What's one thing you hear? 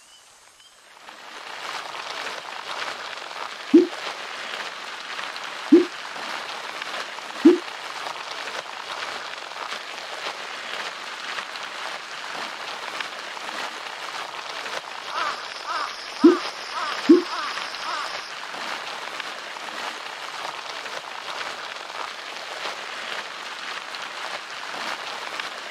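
A bicycle on an indoor trainer whirs steadily as a rider pedals.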